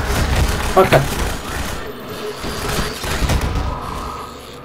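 Gunshots bang loudly in a video game.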